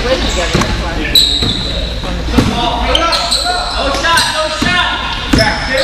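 Children shout and call out in a large echoing gym.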